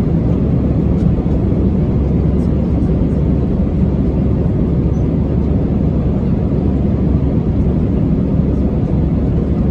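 Jet engines roar with a steady, low, constant rumble.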